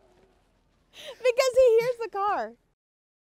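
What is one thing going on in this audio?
A woman speaks with animation close by.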